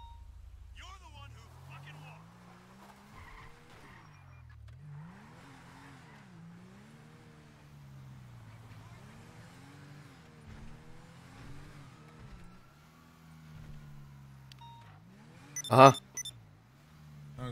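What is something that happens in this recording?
A car engine starts and revs up and down as the car drives off.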